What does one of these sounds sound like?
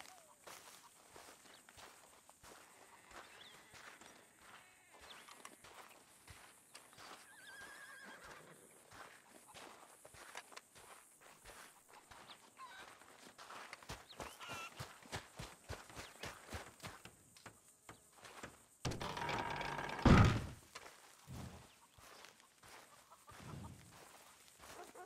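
Boots crunch steadily on dry dirt.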